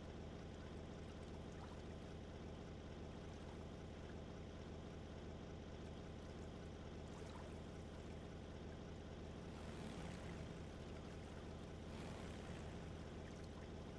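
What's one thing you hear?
Water splashes and sprays against a speeding boat.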